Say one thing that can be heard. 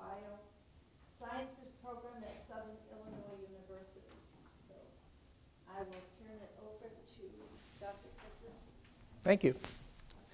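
A middle-aged woman speaks calmly to an audience.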